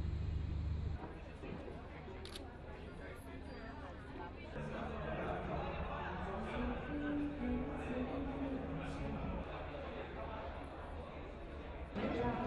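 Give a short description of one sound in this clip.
A crowd of men and women chatters in a room.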